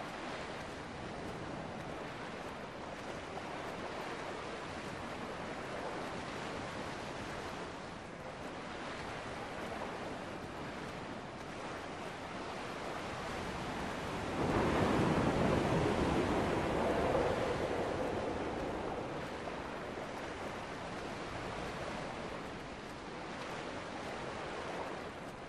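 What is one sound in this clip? Waves wash softly onto a shore, swelling louder for a while.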